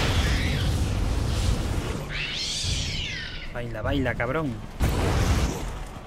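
Gunfire and explosions boom and crackle loudly.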